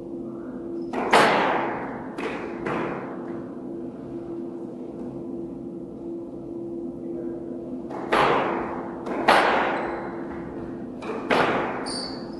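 A squash ball smacks against walls with sharp echoing bangs in a hard, reverberant court.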